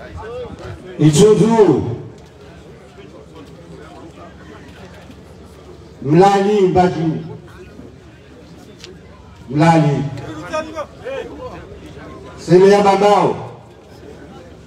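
An elderly man chants loudly through a loudspeaker in long drawn-out phrases.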